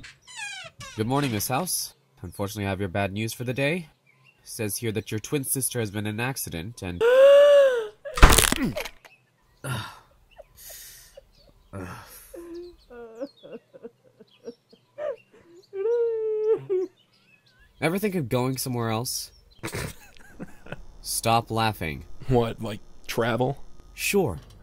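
A man speaks in a nervous, animated voice.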